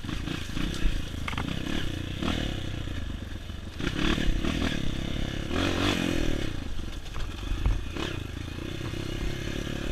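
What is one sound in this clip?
Tyres bump over a rough dirt trail.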